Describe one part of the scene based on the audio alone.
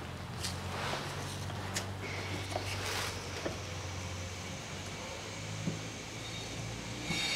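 A gloved hand clicks and scrapes against a metal wiper arm.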